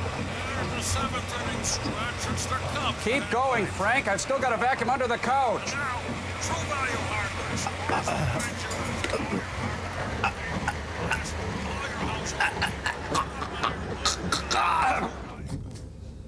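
A man groans and moans loudly.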